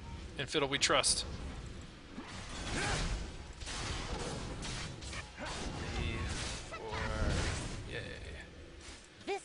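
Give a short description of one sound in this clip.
Game fighters clash with blasts and hits.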